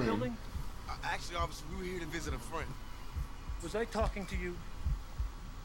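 A young man answers tensely.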